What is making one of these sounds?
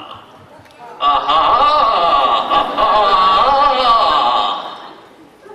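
A young man sings loudly on stage.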